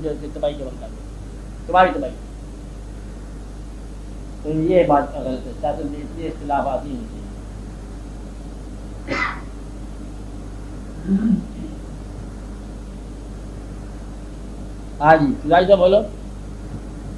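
An elderly man speaks calmly in short phrases with long pauses.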